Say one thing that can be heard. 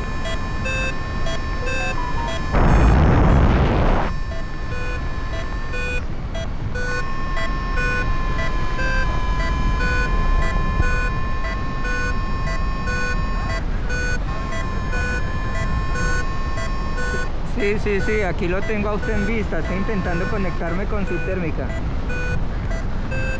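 A flight instrument beeps in quick, repeated high tones.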